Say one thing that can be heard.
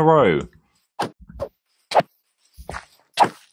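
Stone blocks crack in short bursts as they are struck.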